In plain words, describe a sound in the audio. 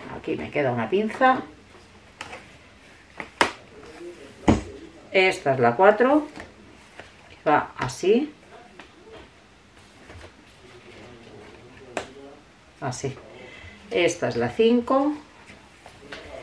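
Stiff paper pages flip and rustle.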